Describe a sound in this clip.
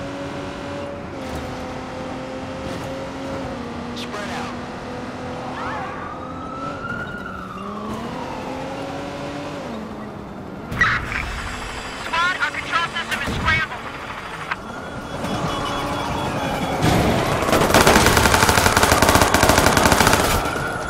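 A car engine hums steadily and rises and falls in pitch as the car drives.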